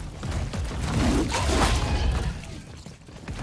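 A large creature growls and roars close by.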